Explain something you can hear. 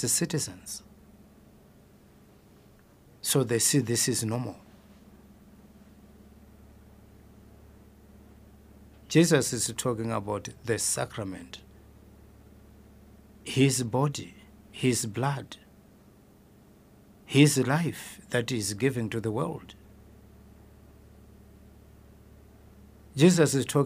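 A man speaks slowly and calmly into a close microphone, with long pauses.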